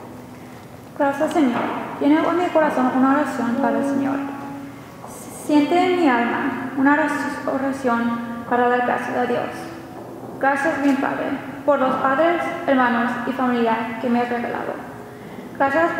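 A young woman speaks calmly into a microphone, heard through loudspeakers in an echoing hall.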